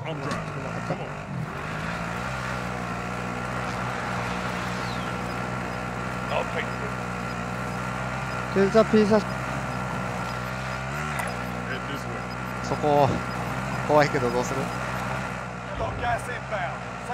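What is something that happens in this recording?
An all-terrain vehicle engine drones steadily as it drives.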